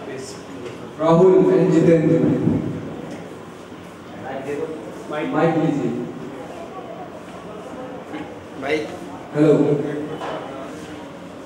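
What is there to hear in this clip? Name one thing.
A boy speaks loudly into a microphone, heard through loudspeakers in an echoing hall.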